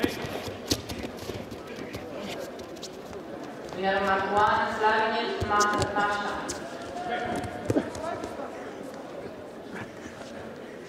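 Spectators murmur and call out in a large echoing hall.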